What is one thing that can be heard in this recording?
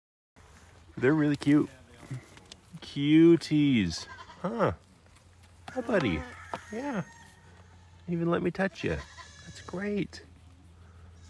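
Goats bleat loudly and close by, in short wavering calls.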